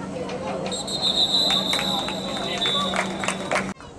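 Football players' pads and helmets thud together at the snap.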